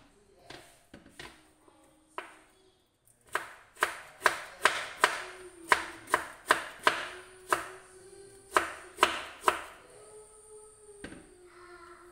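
A knife chops sharply on a plastic cutting board.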